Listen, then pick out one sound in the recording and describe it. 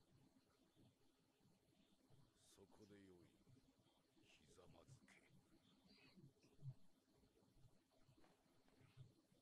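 A man speaks quietly and calmly, close to a microphone.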